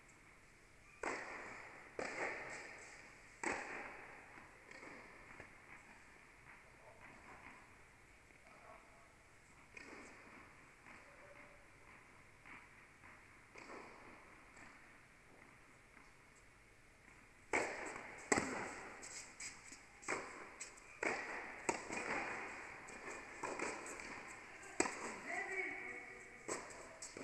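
Tennis balls are struck with rackets, each hit echoing through a large hall.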